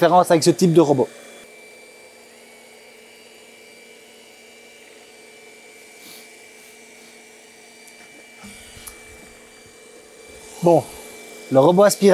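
A robot vacuum hums softly as it moves across the floor.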